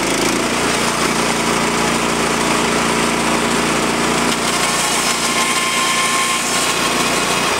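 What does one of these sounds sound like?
A motor drones steadily.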